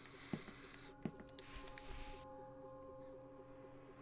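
Paper rustles as a letter is picked up.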